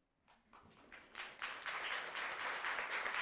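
An audience laughs warmly.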